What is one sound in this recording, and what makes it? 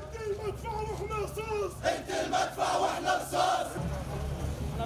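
A crowd of men shouts and talks loudly nearby.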